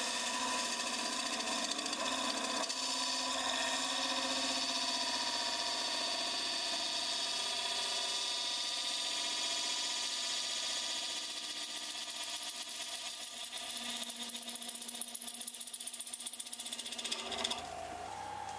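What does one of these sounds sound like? A gouge scrapes and cuts into spinning wood.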